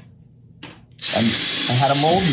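A cordless drill whirs steadily.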